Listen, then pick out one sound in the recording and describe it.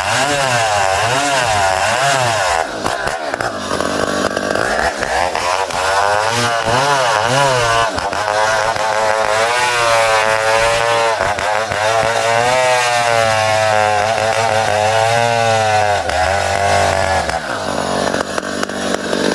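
A chainsaw engine roars and revs up and down while cutting through wood.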